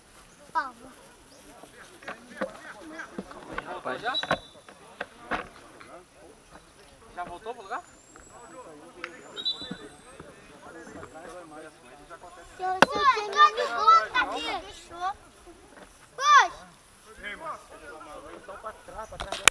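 Several men talk and call out to each other outdoors.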